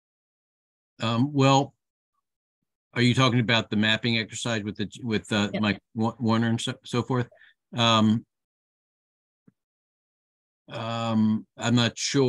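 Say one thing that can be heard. An older man talks with animation over an online call.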